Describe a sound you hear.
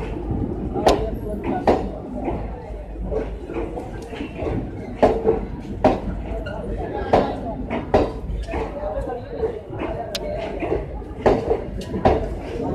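Train wheels clack in a repeating rhythm over rail joints.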